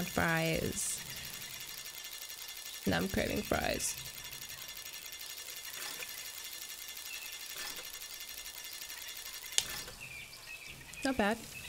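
Slot machine reels spin with a whirring rattle.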